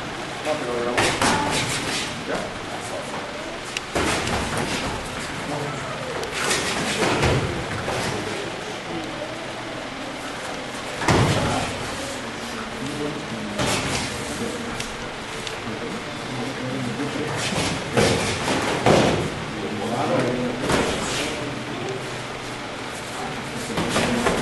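Padded gloves thump against bodies and gloves in bursts.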